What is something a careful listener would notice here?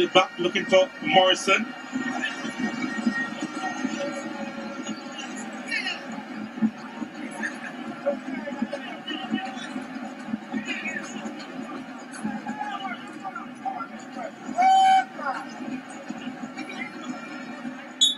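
A large stadium crowd murmurs and cheers throughout.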